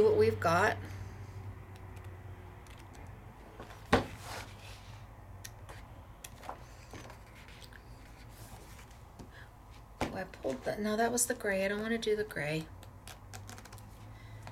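Sheets of stiff paper rustle and flap as they are turned.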